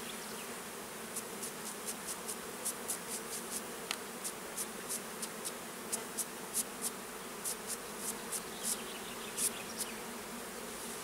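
A hive tool scrapes and taps against a wooden frame in quick clicks.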